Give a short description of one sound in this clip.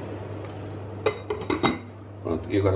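A metal lid clanks onto a pot.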